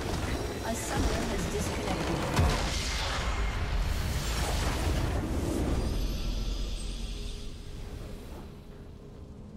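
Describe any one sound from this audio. A huge magical explosion roars and crackles, then fades away.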